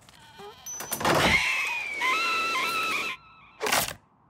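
A cartoon bird squawks and shrieks in panic.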